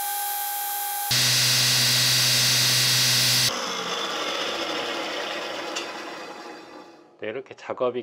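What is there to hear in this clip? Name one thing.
A belt sander whirs loudly and then slowly spins down.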